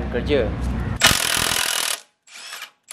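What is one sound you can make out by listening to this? An impact wrench whirs in a short burst.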